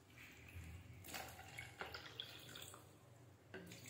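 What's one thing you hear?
Liquid splashes from a glass into a bowl of water.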